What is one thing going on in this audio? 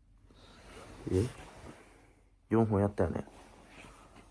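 A young man speaks briefly, close by.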